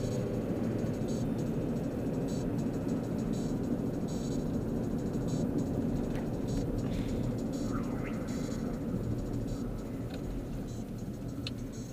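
Buttons on a car dashboard click.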